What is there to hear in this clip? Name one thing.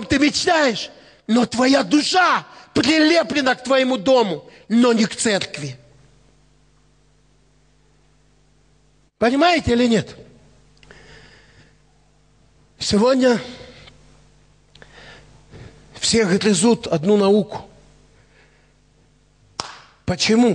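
A middle-aged man preaches with animation through a headset microphone and loudspeakers, in bursts with pauses.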